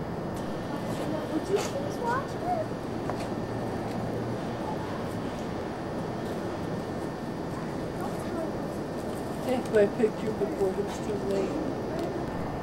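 A middle-aged man speaks briefly and casually nearby.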